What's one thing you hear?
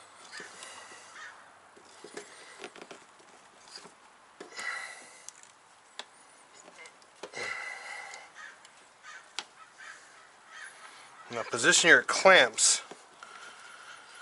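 Metal parts click and clatter as hands work on an engine.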